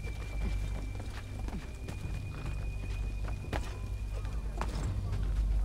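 Hands grab and scrape against a stone wall while climbing.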